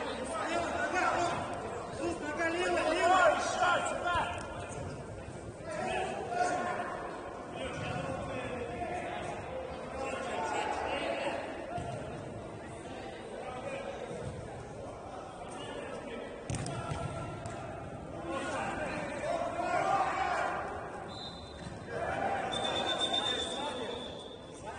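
Young men shout to each other in a large echoing hall.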